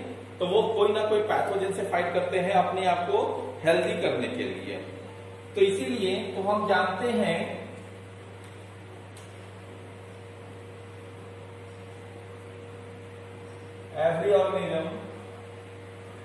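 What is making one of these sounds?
A man speaks calmly, as if teaching, close to the microphone, with long pauses.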